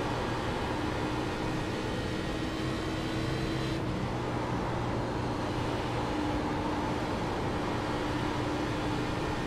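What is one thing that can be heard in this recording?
A race car engine roars loudly and steadily at high speed.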